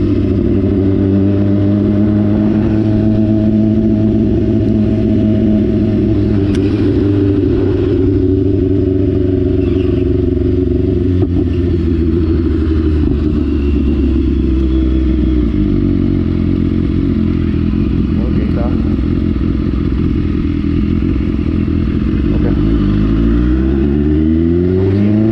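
A motorcycle engine hums steadily close by, its pitch shifting and rising near the end.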